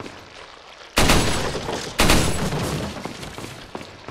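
A submachine gun fires loud bursts that echo.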